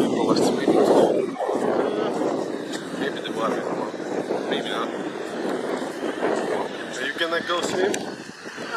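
A young man talks close to a microphone, outdoors in wind.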